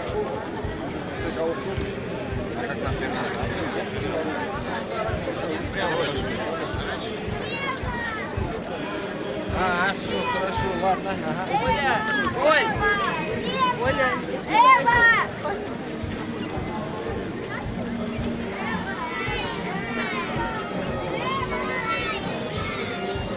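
A large crowd murmurs and chatters outdoors.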